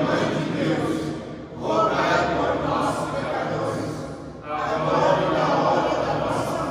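A group of men and women pray aloud together in unison, echoing in a large hall.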